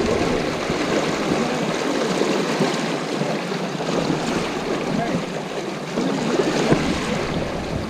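Wading legs splash through the water nearby.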